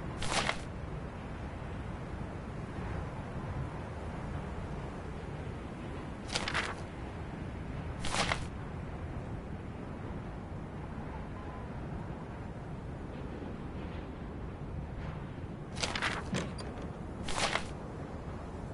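A paper photograph rustles briefly as it is handled and turned over.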